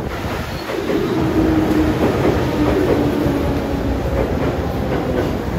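Train brakes squeal as the train slows.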